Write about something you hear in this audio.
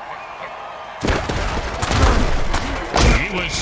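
Players crash together with heavy thuds.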